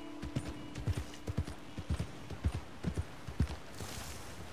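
A horse's hooves clop on a dirt path.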